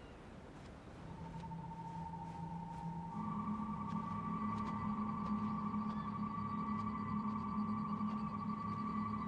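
A raised sword gives off a steady, humming ringing tone that grows louder.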